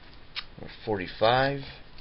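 A thin comic book's pages rustle as they are turned.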